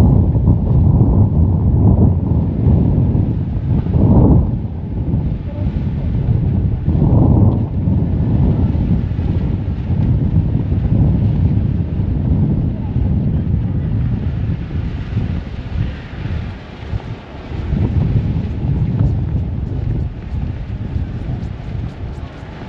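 Wind gusts and rumbles outdoors against the microphone.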